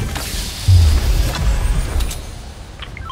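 A treasure chest bursts open with a bright chime.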